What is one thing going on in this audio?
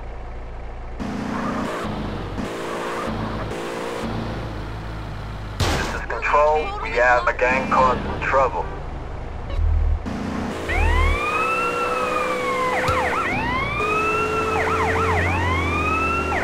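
A car engine revs and the car drives off.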